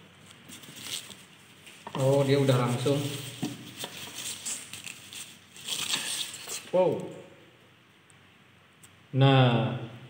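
Plastic wrapping crinkles as it is pulled off.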